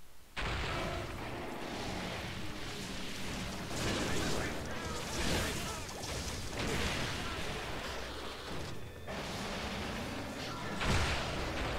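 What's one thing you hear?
Heavy footsteps thud as a large beast stomps.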